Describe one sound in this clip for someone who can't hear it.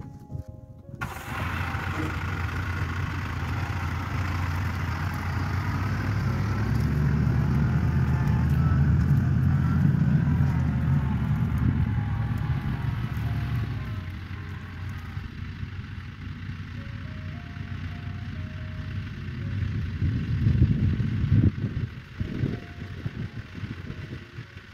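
A compact diesel tractor engine runs and drives off.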